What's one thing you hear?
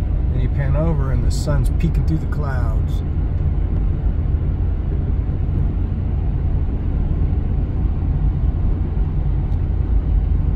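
A car's engine and tyres rumble steadily on the road.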